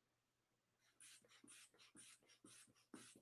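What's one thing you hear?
A blood pressure cuff's bulb is squeezed rapidly, with a soft rhythmic puffing.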